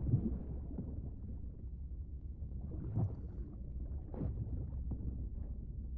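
Muffled underwater rumbling and bubbling goes on throughout.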